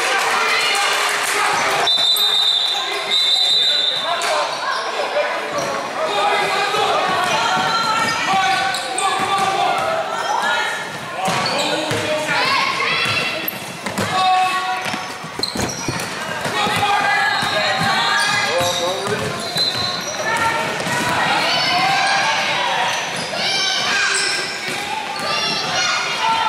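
Sneakers squeak sharply on a hardwood floor.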